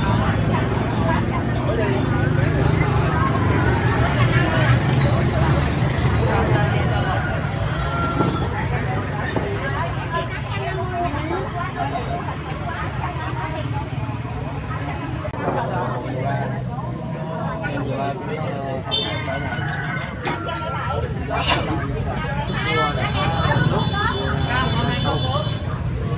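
Motorbike engines hum nearby.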